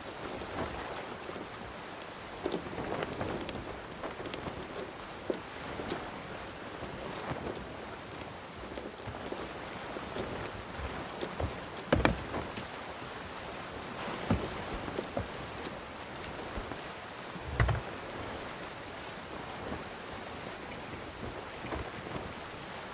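Waves lap and splash against a wooden boat's hull.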